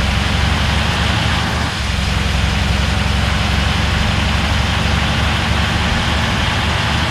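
A bus engine rumbles steadily as it drives along.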